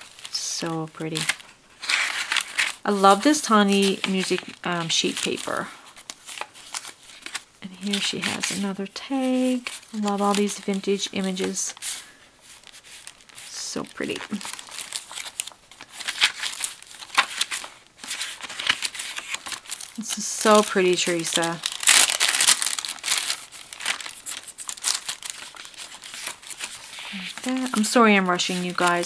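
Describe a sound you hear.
Paper pages rustle and flip as they are turned by hand.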